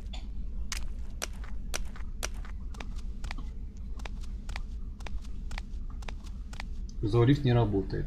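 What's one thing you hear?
Footsteps tap steadily on a hard floor in a game.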